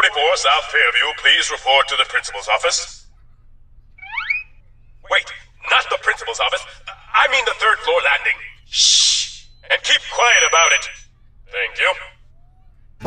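A man speaks with animation over a loudspeaker.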